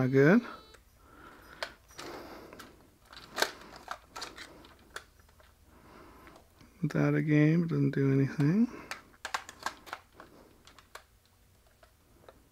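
Plastic clicks and knocks as a small device is handled and a cable is plugged in.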